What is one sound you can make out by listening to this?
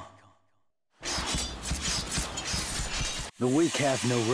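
Swords clash and slash in a rapid burst of whooshing hits.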